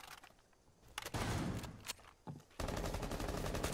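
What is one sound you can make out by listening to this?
A wooden barricade smashes and splinters.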